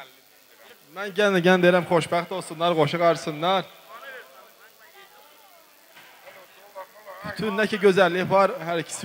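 A young man sings loudly into a microphone, heard through loudspeakers in an echoing hall.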